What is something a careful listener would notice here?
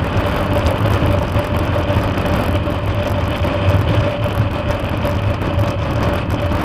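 Wind roars loudly past the rider.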